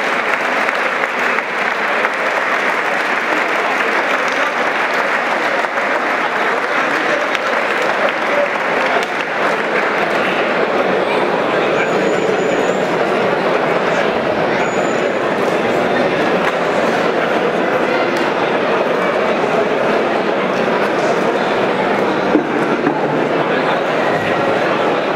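A large indoor crowd chatters and murmurs steadily, echoing in a big hall.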